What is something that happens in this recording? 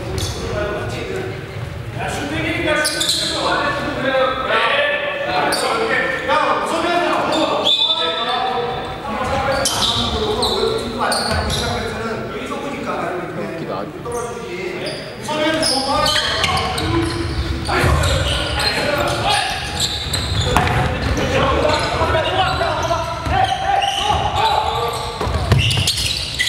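Young men shout and call out to each other across a large echoing gym.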